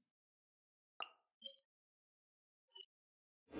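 Soft chimes ring from a game menu.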